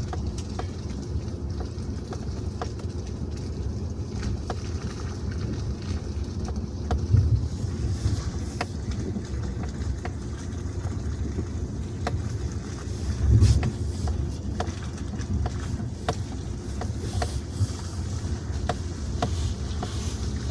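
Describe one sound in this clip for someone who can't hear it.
A car engine rumbles steadily from inside the car as it drives slowly.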